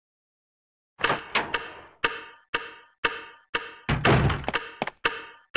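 A heavy wooden door creaks open with echoing thuds.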